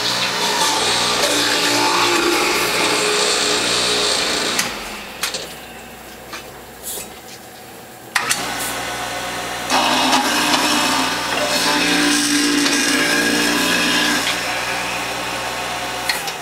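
An electric juicer whirs steadily.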